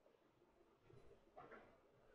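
A chess clock button clicks.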